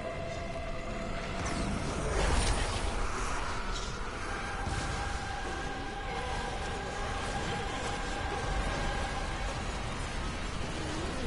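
Game music plays with steady sustained tones.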